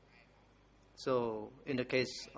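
An elderly man speaks into a microphone.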